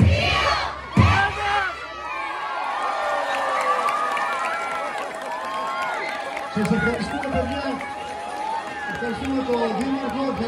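A large outdoor crowd cheers and shouts excitedly.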